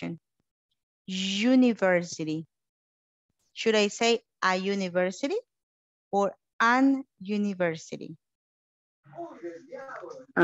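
A woman speaks clearly through an online call.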